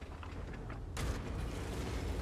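A tank cannon fires with a sharp boom.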